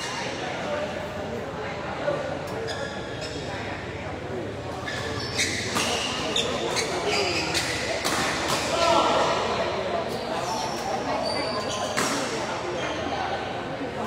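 A crowd of young men chatters in the background.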